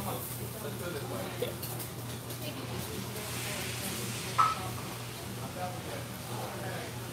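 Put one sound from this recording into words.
A middle-aged man speaks quietly close by.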